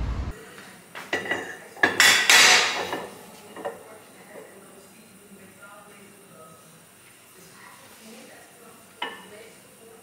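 Metal parts clank and knock against each other.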